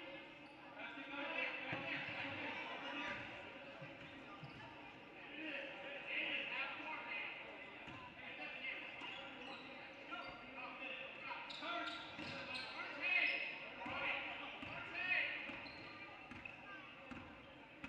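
Spectators and players call out and chatter in an echoing gym.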